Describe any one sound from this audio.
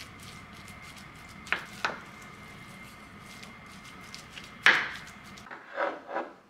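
A spoon scrapes and taps against a glass dish.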